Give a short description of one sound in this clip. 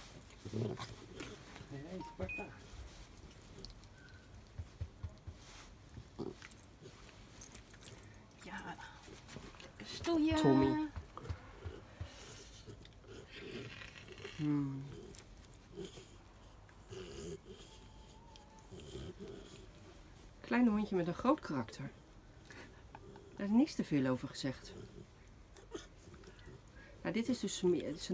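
A hand rustles softly through a dog's fur.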